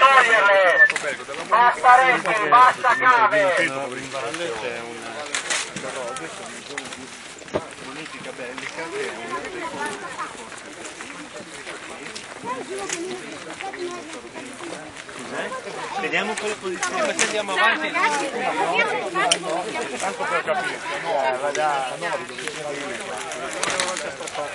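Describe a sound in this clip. A crowd of men talks and shouts loudly nearby outdoors.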